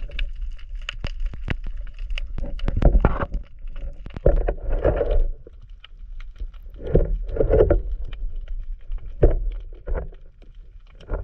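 Water gurgles and swishes softly around a diver swimming underwater.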